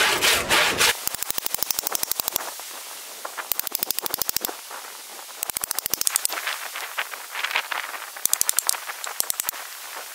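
A hatchet is tapped into a log with quick knocks.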